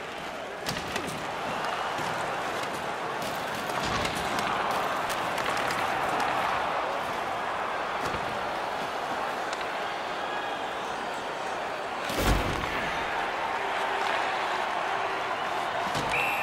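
A large crowd murmurs and roars steadily in an echoing arena.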